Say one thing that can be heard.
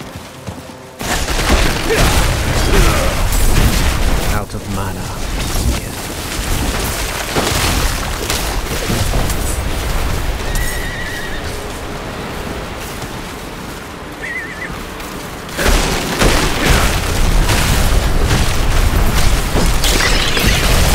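Icy magic blasts crackle and shatter in a game.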